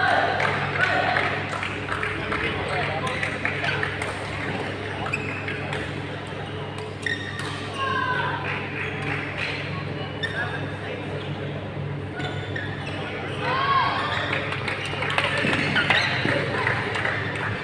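A crowd of people chatters in the background of a large echoing hall.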